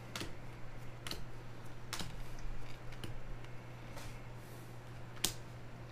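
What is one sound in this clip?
Trading cards flick and slap against each other as they are shuffled by hand.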